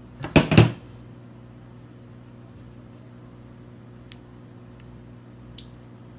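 Fingers tap and click against a small metal device.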